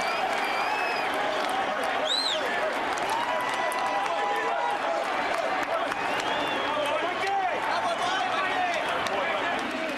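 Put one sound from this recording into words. Hands slap together in high fives.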